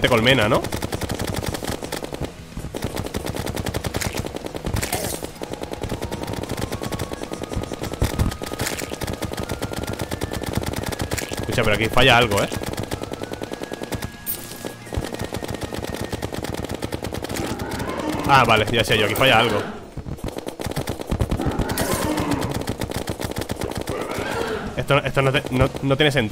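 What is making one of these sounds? Rapid game sound effects of weapon hits and enemy strikes play in quick succession.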